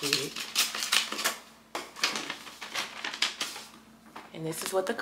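Wrapping paper rustles and crinkles close by.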